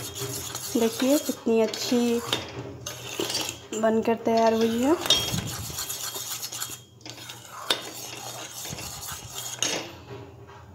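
A spoon stirs thick batter in a metal bowl with soft scraping.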